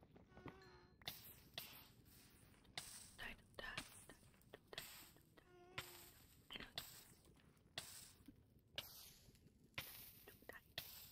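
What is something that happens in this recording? Lava pops and crackles.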